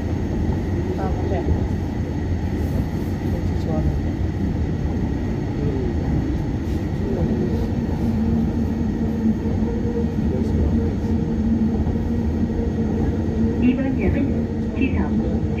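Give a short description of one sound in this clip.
Train wheels squeal on a curve.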